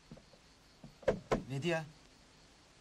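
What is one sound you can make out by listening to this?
A man knocks loudly on a wooden door.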